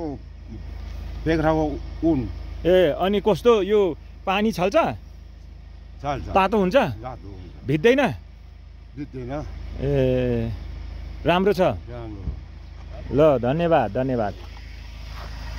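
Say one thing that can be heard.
An elderly man speaks close by in a calm voice.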